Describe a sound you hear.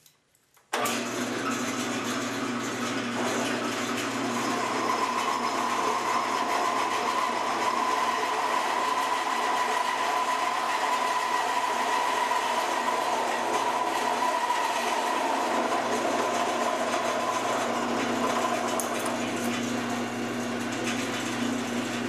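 A milling machine motor hums steadily.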